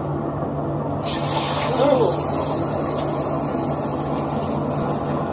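Liquid pours and splashes into a vessel.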